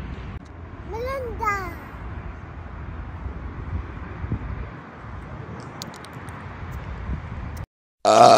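A small boy speaks in a high voice.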